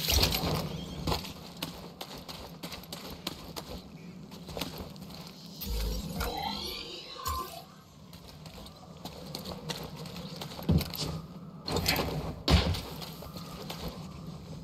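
Footsteps thud and swish through grass.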